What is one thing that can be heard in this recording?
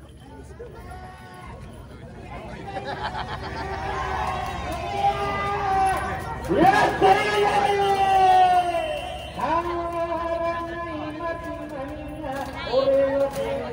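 A large crowd chants and sings loudly together outdoors.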